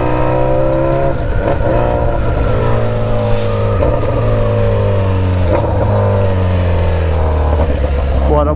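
A motorcycle engine hums loudly and steadily, shifting pitch as the rider changes gears.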